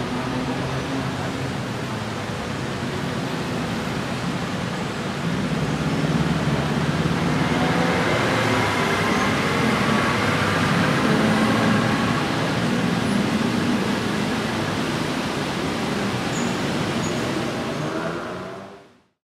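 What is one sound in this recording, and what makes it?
City traffic rumbles steadily on a busy road below.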